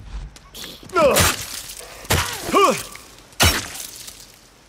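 A wooden bat strikes with heavy thuds.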